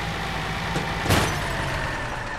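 A loud crash sounds as a truck hits a trailer.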